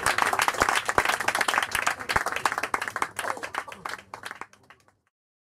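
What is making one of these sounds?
A saxophone plays a fast jazz line.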